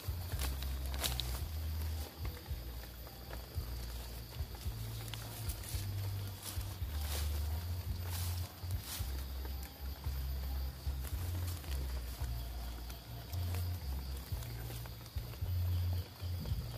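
Dry leaves rustle and crackle as a hand brushes through them.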